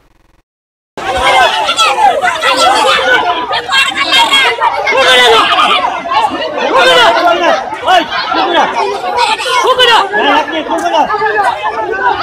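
A crowd of men and women shout and argue loudly outdoors.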